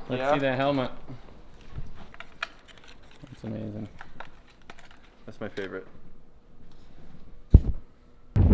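A plastic helmet clicks and rattles in someone's hands.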